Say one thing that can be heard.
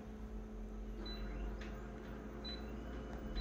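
A touchscreen gives short high beeps.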